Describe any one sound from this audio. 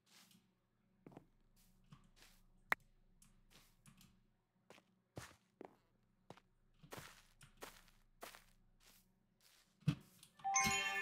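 Footsteps crunch over grass and stone at a steady walking pace.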